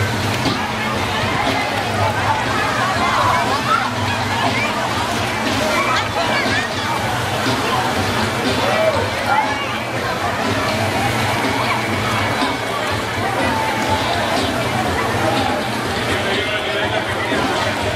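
A crowd of young men and women chatters and shouts all around.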